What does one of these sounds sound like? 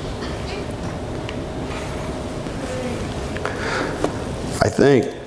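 A middle-aged man speaks calmly through a microphone in a reverberant hall.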